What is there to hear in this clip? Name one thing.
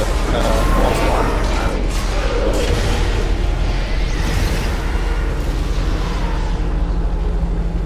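Magic spells whoosh and crackle in a fight.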